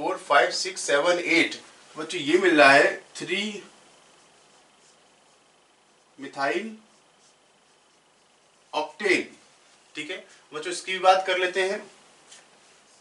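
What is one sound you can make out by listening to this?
A man speaks calmly into a microphone, explaining in bursts with pauses.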